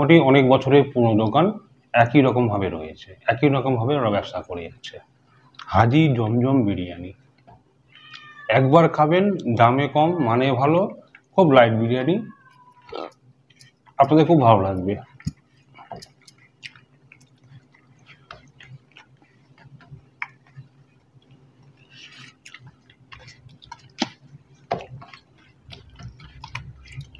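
Fingers and food scrape softly on plates.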